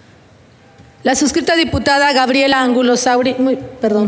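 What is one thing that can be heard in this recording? A woman speaks clearly into a microphone, heard through a loudspeaker in a large room.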